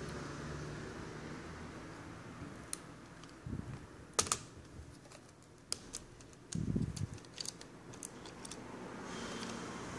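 A screwdriver clicks and scrapes against small metal screws.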